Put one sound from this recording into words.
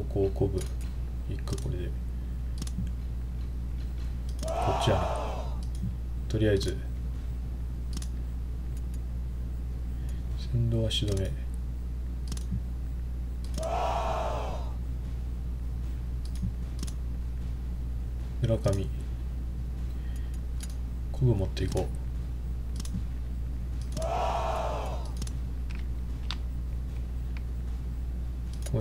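Game menu clicks and soft blips sound now and then.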